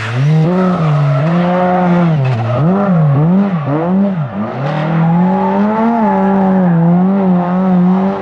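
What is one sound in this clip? Tyres screech on pavement as a car drifts.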